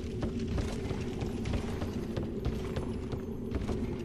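Footsteps run across a stone floor.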